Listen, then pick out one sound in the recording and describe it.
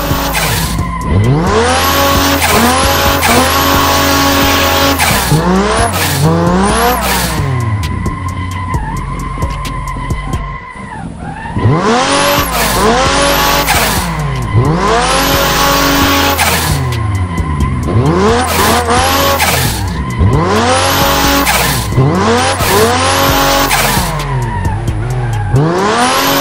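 Tyres screech loudly as a car drifts through corners.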